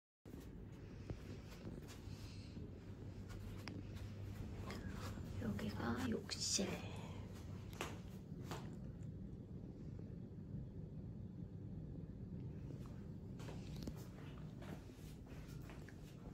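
Footsteps tread across a floor indoors.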